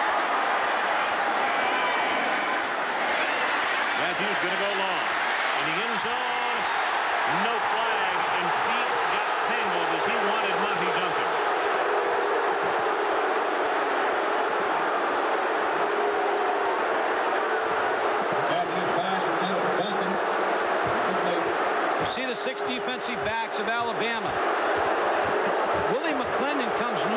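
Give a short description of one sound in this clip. A large stadium crowd roars and cheers loudly throughout.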